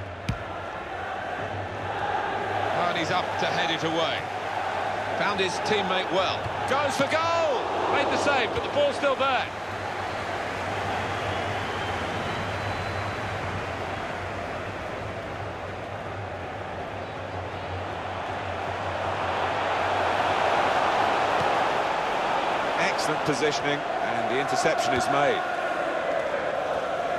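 A large stadium crowd roars and murmurs steadily, swelling louder for a while.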